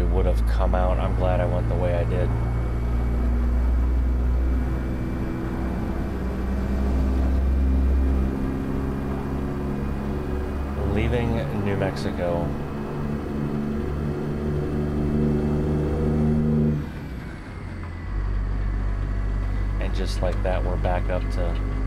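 A truck engine rumbles steadily, its pitch shifting as gears change.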